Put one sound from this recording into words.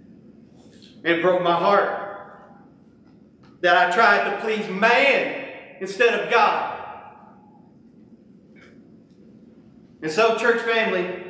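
A man speaks with emphasis into a microphone, in bursts with pauses, in a room with some echo.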